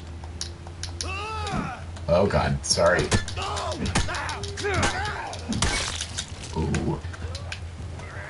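A man shrieks and growls in a struggle.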